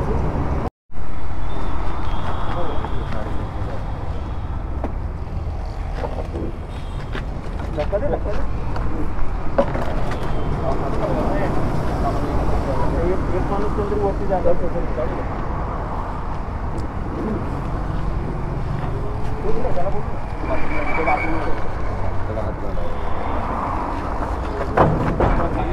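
A motorcycle rattles as men push it up a metal ramp.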